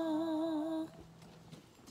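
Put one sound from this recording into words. A woman sings through a microphone with vibrato.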